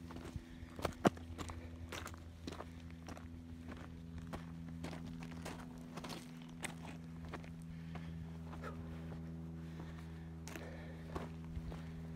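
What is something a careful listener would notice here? Footsteps crunch on loose gravel and rocks.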